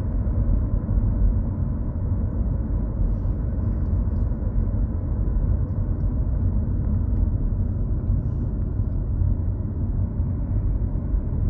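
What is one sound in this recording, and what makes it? A car engine hums steadily as tyres roll over the road, heard from inside the car.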